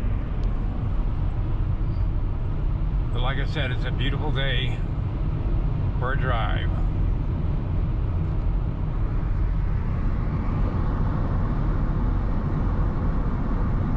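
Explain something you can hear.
Tyres rumble steadily on a paved road from inside a moving car.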